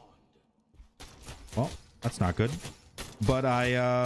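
Blades clash and hit in a fast video game fight.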